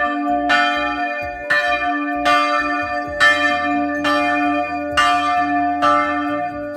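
A church bell rings loudly and repeatedly, each stroke ringing on.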